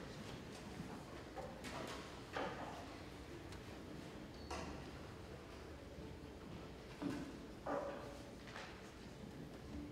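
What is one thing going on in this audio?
A choir of young women sings softly in a large hall.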